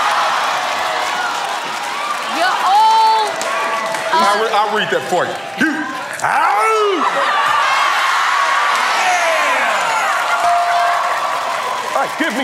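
Women in an audience laugh and scream.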